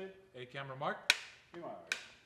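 A clapperboard snaps shut with a sharp clap.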